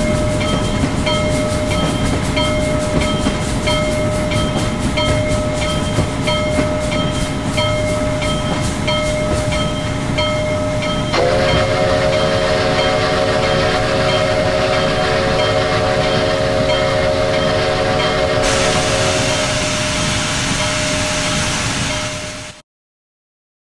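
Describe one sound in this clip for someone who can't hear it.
A steam locomotive rumbles and hisses as it rolls along.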